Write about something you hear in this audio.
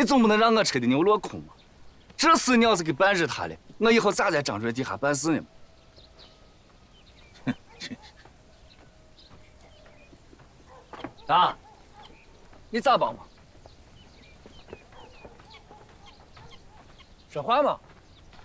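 An older man talks with animation and laughs up close.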